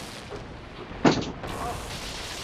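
An electric crackle of lightning bursts out.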